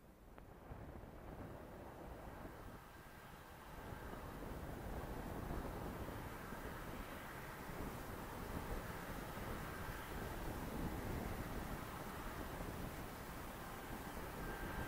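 A propeller plane's engines idle and hum steadily nearby, outdoors in wind.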